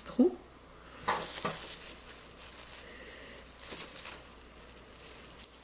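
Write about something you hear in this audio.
Paper rustles as it is folded.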